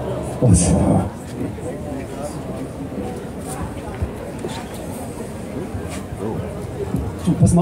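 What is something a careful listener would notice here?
A man speaks with animation through a microphone and loudspeakers outdoors.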